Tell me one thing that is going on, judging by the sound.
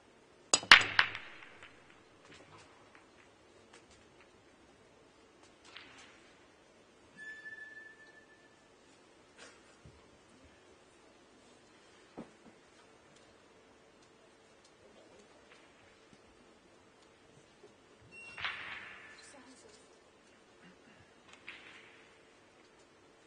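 Snooker balls click against each other on a table.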